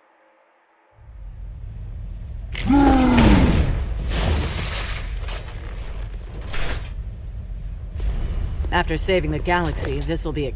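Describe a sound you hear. Loud video game fighting sounds and music play with thumps and whooshes.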